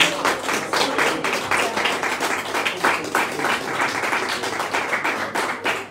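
An acoustic guitar is strummed hard and fast through a loudspeaker.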